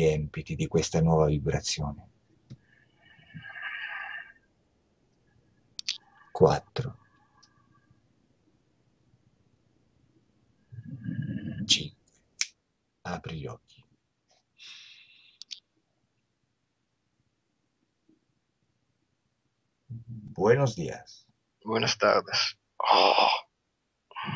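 A second man answers calmly, close to a microphone.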